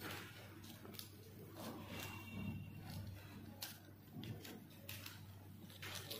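Pliers click and snap against small metal parts.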